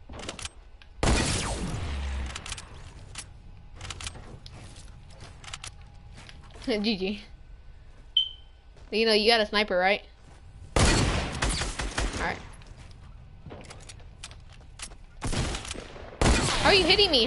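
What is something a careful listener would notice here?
Loud gunshots blast, one after another.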